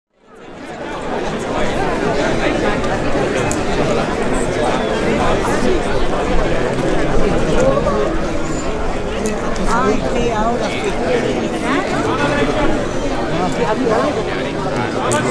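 A large crowd of men and women murmurs and chatters outdoors.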